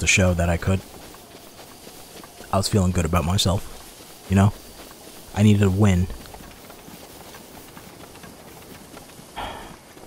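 Footsteps run softly through grass.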